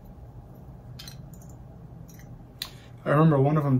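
Small metal parts click softly in a person's hands.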